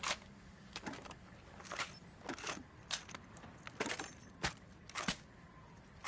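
A rifle clicks and rattles as it is handled.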